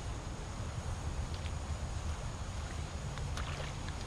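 Water splashes as a stick is pulled from a pond.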